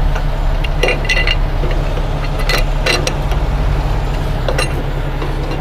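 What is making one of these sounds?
Metal chains clink and rattle.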